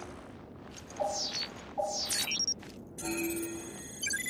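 An electronic scanner beeps repeatedly.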